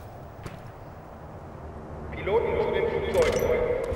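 Ammunition clinks as it is picked up.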